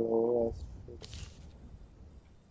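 A photograph is picked up with a short papery swish.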